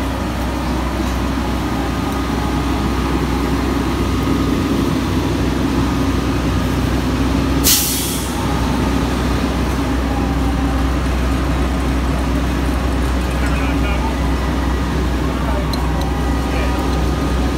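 A fire engine's engine idles with a steady low rumble nearby.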